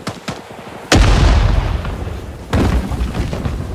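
Loud gunshots ring out close by.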